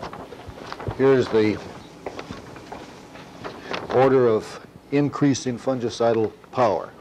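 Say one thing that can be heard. An elderly man speaks in a lecturing tone.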